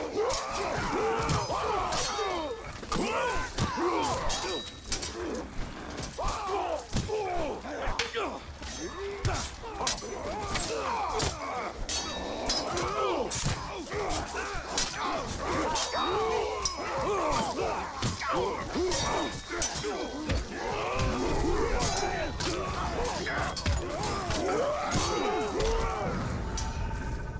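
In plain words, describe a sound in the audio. Swords clash and strike repeatedly in a fast, chaotic fight.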